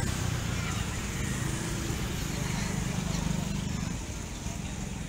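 A motorbike engine hums as it passes close by.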